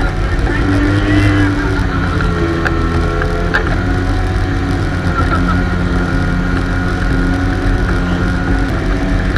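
Water churns and splashes loudly in a boat's wake.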